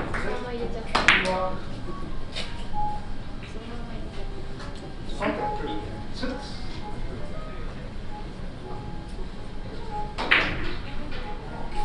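Billiard balls clack against each other and the cushions.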